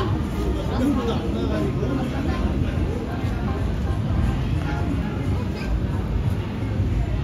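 Young women chat nearby.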